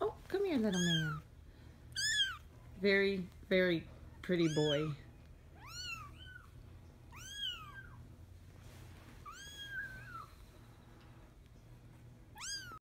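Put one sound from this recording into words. A tiny kitten mews in high, thin cries, again and again.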